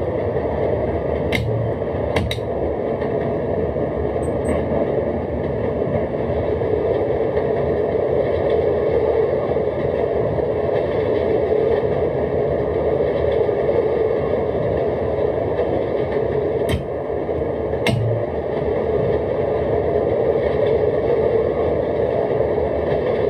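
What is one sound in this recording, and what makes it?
A train rumbles steadily along rails.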